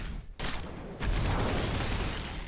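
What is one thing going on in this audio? A bright magical blast bursts.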